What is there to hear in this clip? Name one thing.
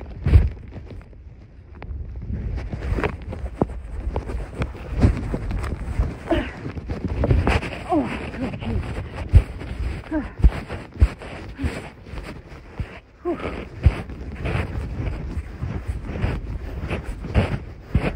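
Fabric rustles and rubs right against the microphone.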